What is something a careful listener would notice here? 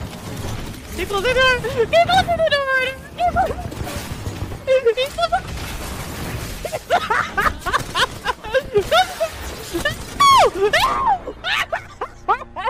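A young person talks with animation into a close microphone.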